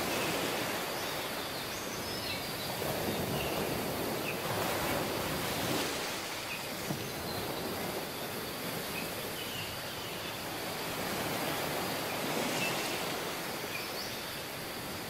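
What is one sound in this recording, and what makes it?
Waves break and wash up onto a beach close by.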